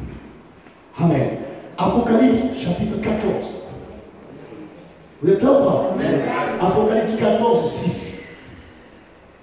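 A man speaks with animation in a large echoing room.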